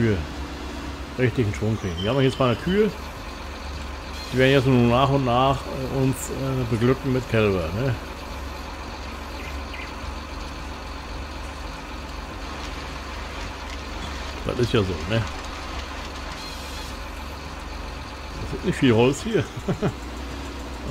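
A heavy machine's engine hums steadily and low.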